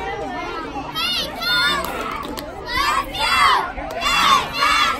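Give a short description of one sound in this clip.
Men nearby shout and cheer loudly.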